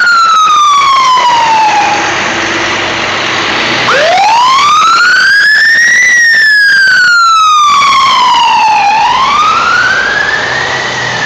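An emergency vehicle's siren wails loudly close by, rising and falling.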